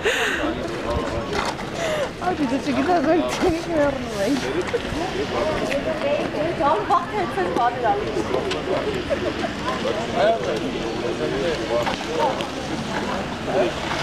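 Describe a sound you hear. Several men and women talk nearby outdoors.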